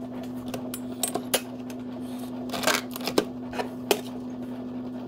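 A metal jug and cup clink as they are set down.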